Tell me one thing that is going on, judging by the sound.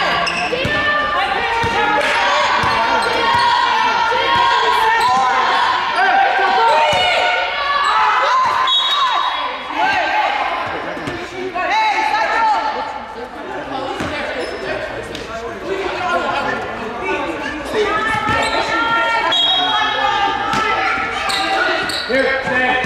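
Young women players shout and call out to each other.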